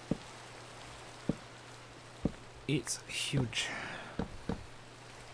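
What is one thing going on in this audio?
Footsteps thud softly on wooden planks.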